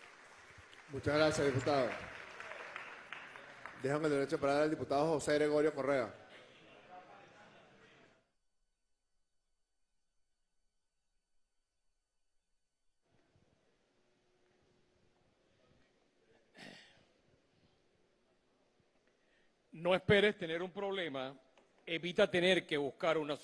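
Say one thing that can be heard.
A man speaks firmly into a microphone, echoing through a large hall.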